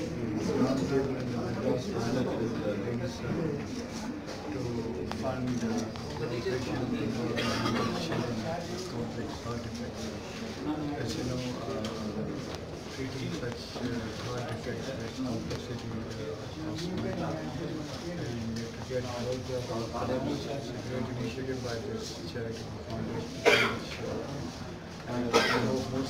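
An elderly man speaks calmly into close microphones.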